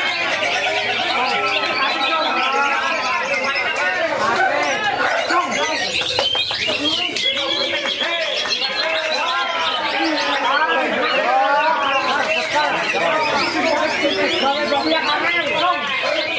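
A caged bird sings a rapid, varied song of chirps and warbles throughout.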